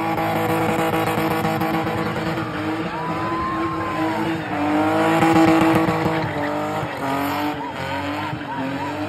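A crowd of onlookers cheers and shouts.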